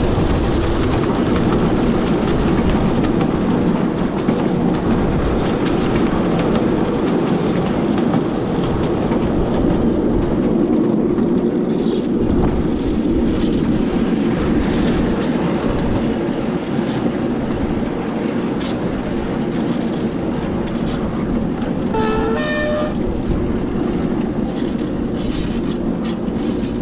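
Train wheels clatter on narrow rails.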